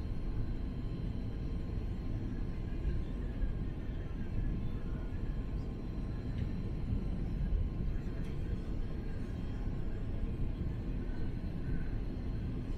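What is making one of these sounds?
An aircraft engine drones steadily and loudly in the cabin.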